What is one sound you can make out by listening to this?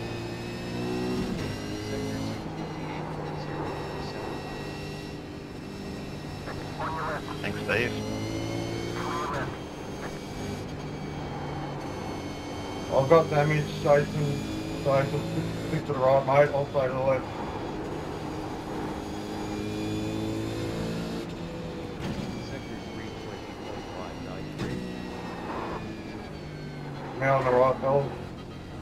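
A racing car engine roars steadily, rising and falling in pitch as it shifts gears.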